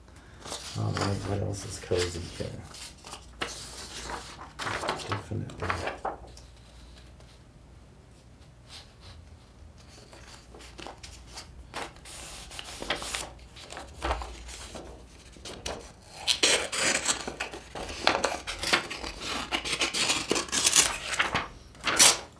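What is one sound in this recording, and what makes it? Paper rustles and crinkles as pages are handled and folded.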